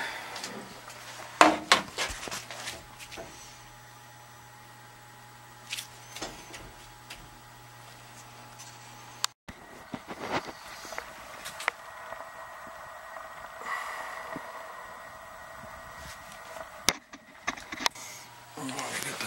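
A heating boiler hums steadily nearby.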